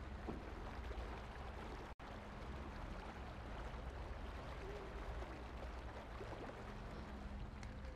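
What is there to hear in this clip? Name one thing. Footsteps splash and slosh through shallow water.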